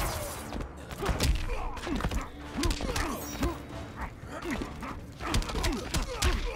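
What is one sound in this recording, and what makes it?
Punches and kicks land with heavy thuds in quick succession.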